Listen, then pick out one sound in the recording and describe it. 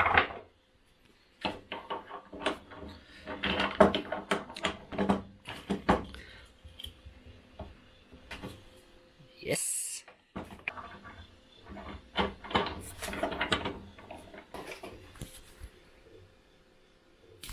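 Metal parts clink and knock as they are handled.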